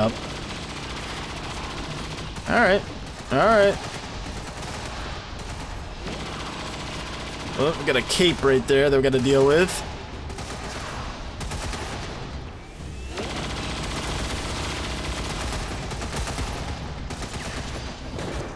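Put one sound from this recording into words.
A laser gun fires in sharp bursts.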